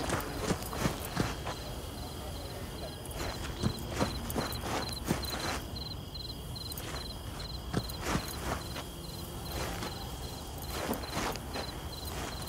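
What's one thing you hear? Footsteps crunch on dry ground at a walking pace.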